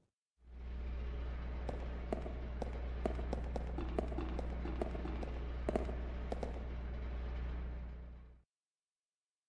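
Footsteps clatter on a metal floor.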